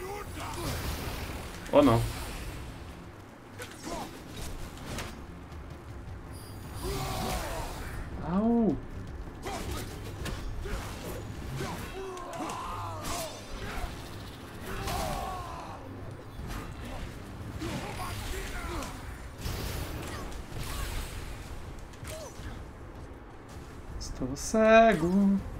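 A young man talks into a microphone with animation, close by.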